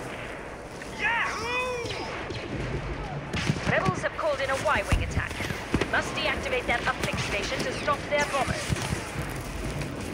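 Laser blasters fire in rapid zapping bursts.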